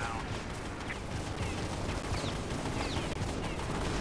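An explosion booms and debris rattles.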